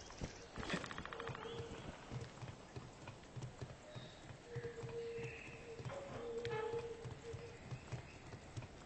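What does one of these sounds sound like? Boots clank rhythmically on metal ladder rungs during a climb.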